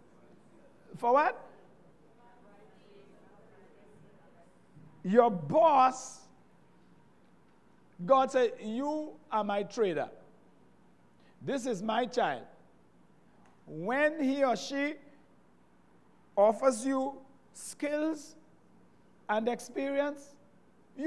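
A middle-aged man preaches with animation into a microphone, in short emphatic bursts with pauses.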